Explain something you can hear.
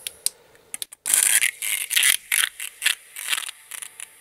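An airbrush hisses as it sprays.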